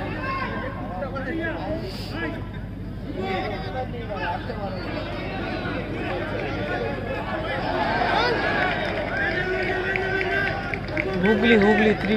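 A large crowd of spectators chatters and cheers outdoors.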